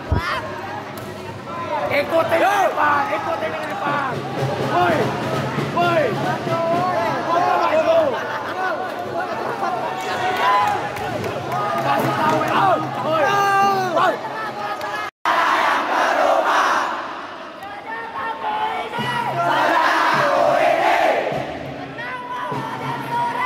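A crowd of young men chants and sings loudly in an echoing hall.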